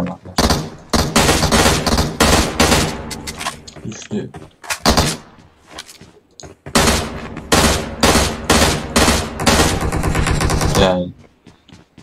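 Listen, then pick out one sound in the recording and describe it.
Rapid gunfire bursts loudly in short volleys.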